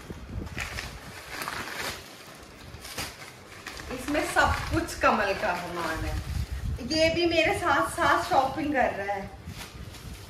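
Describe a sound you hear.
Paper packaging crinkles and rustles.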